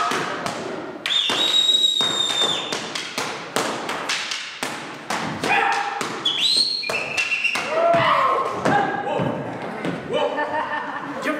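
A drum is beaten in a fast, steady rhythm.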